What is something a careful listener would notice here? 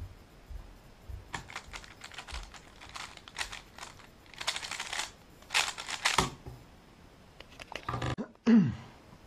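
A puzzle cube clicks and rattles as its layers are turned quickly.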